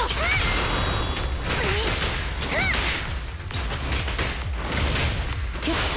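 Sword slashes and magic blasts whoosh and crash in quick succession.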